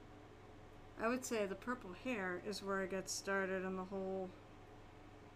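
A woman speaks casually into a nearby microphone.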